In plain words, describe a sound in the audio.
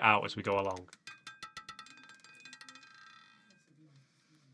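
A roulette ball clatters and rattles around a spinning wheel.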